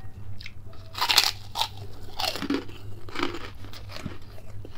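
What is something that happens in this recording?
Something crisp crunches as a man bites into it.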